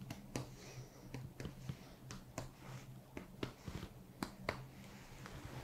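Hands tap and pat lightly on a person's back.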